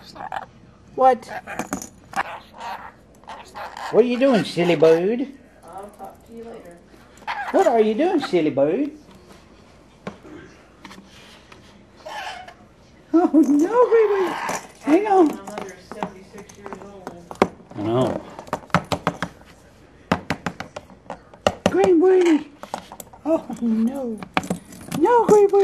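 A parrot chatters and squawks in short bursts.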